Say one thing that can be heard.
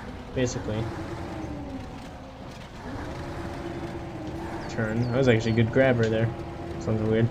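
A hydraulic crane arm whines as it moves.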